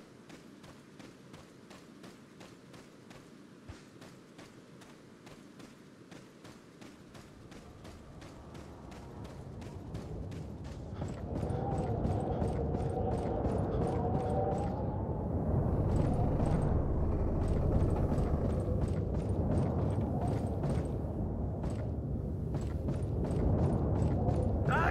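Footsteps walk at a steady pace on ground and then on wooden planks.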